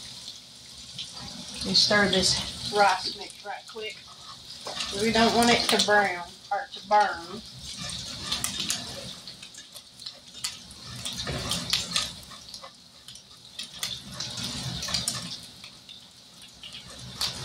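Food sizzles in hot pans.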